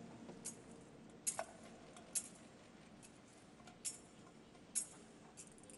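A metal censer clinks on its chains as it swings, echoing in a large hall.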